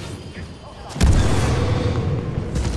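A jetpack roars with a burst of flame.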